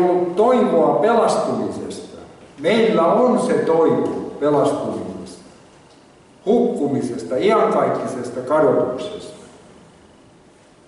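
An elderly man speaks slowly and earnestly into a microphone in a room with slight echo.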